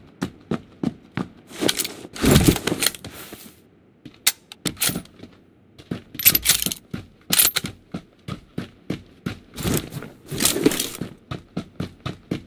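Footsteps run quickly over snowy ground.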